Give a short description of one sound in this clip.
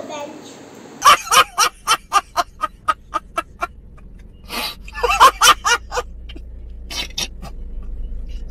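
A young man shouts and laughs loudly in short bursts close to the microphone.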